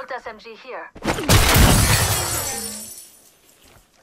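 A crate bursts open with a loud whoosh.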